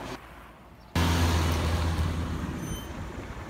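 A city bus drives along a street far off.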